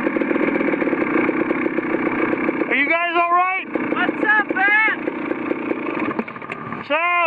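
A small motorbike engine idles steadily.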